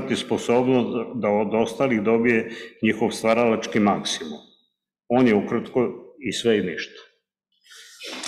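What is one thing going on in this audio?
A man reads out calmly through a microphone.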